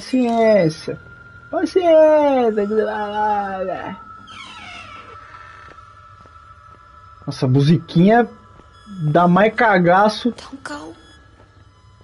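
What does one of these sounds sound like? A young man talks with animation into a microphone, close up.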